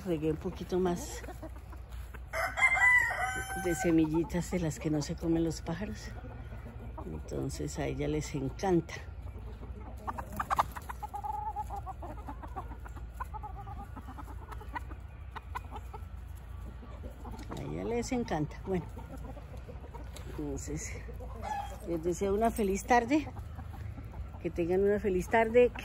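Hens cluck and murmur close by.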